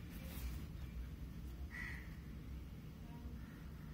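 Cards are shuffled softly in the hands.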